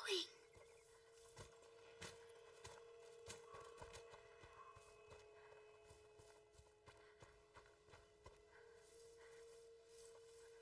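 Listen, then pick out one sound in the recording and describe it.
Footsteps patter quickly over ground and through dry grass.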